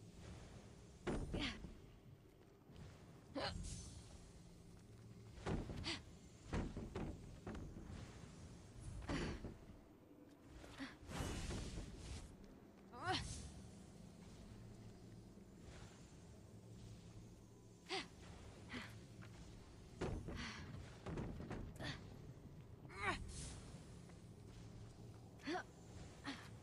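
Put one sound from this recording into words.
Heavy wooden crates thud and scrape as they are lifted and thrown.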